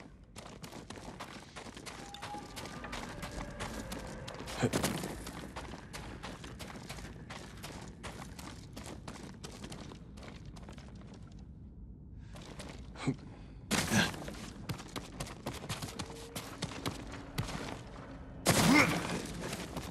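Footsteps scuff and crunch on rocky ground.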